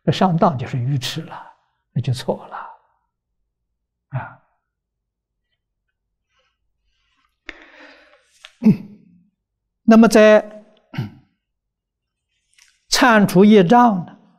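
An elderly man speaks calmly and slowly into a close microphone, with pauses.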